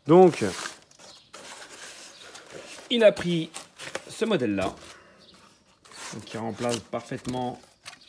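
Foam packaging squeaks and rustles.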